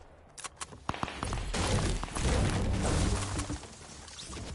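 A pickaxe swings and strikes.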